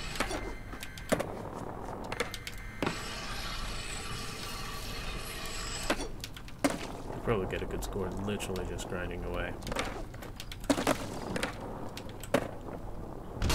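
Skateboard wheels roll and clack on hard ground.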